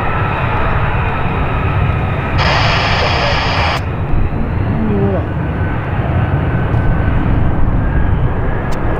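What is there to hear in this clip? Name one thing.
A jet engine roars loudly as a fighter jet takes off.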